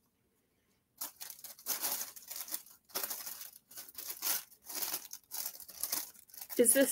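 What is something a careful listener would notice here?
Plastic sticker packets rustle and crinkle as they are handled.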